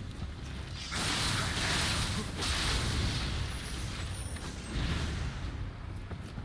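Swords clash and slash in a fight.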